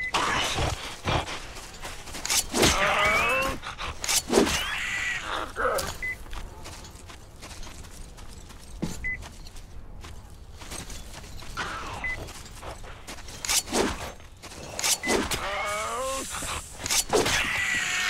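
A pistol fires sharp shots, one at a time.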